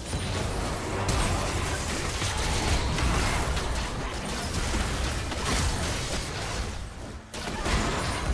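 Video game spell effects whoosh, crackle and clash during a fight.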